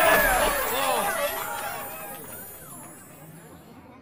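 Magical game sound effects shimmer and chime, then slowly fade away.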